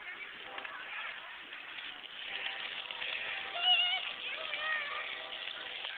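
Young children shout and squeal playfully nearby outdoors.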